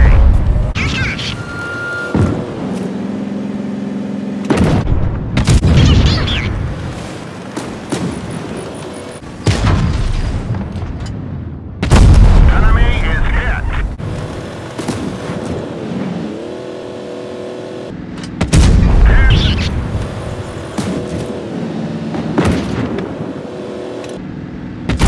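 A tank engine rumbles and whines steadily.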